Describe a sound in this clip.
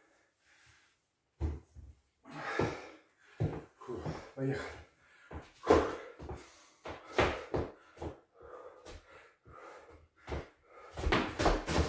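Footsteps shuffle on a wooden floor.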